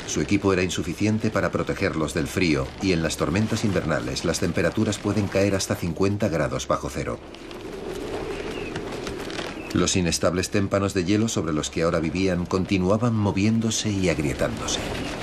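A crowd of men sings and chants loudly, close by.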